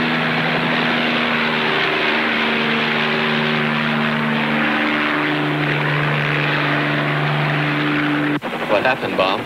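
A helicopter's rotor whirs loudly as it lifts off and flies away.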